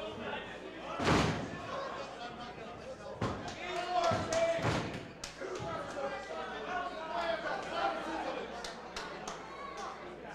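A small crowd murmurs and calls out in an echoing room.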